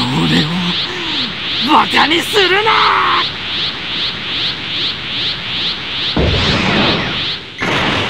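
A crackling energy aura whooshes and hums in rapid pulses.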